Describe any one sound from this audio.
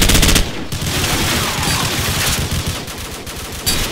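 A rifle magazine clicks out and in during a reload.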